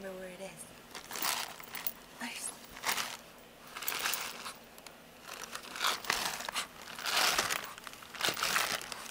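A small dog digs and scratches at fabric.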